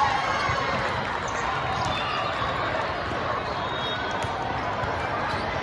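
A crowd of voices chatters and cheers in a large echoing hall.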